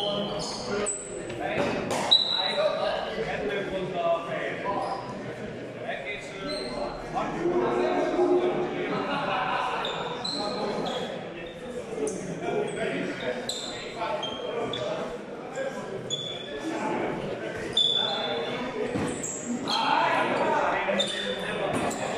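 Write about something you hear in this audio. Men talk in the background of a large echoing hall.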